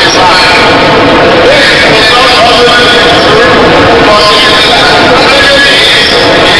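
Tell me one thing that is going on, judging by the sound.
A large crowd chatters and cheers loudly all around.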